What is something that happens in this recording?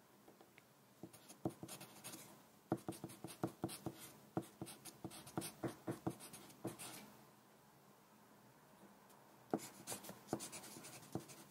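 A pencil scratches and taps on paper close up.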